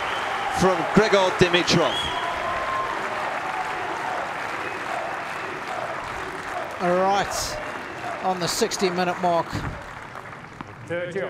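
A large crowd murmurs and cheers in an open arena.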